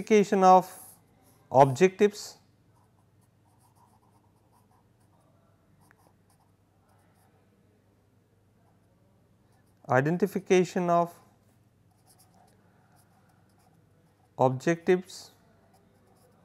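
A marker squeaks faintly on paper.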